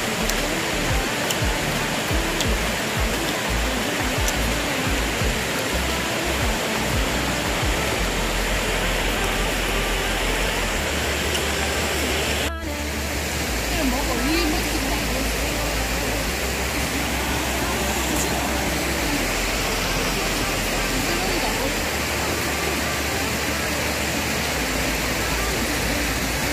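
Water rushes steadily over rocks in a stream.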